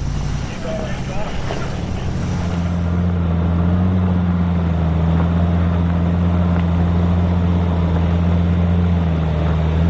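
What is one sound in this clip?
An off-road vehicle approaches with a deep, steady engine drone.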